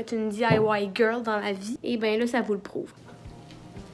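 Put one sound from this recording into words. A young woman talks close up with animation.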